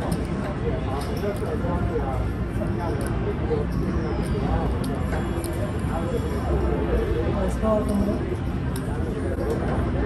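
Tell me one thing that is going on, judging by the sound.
Casino chips clack as they are stacked on a table.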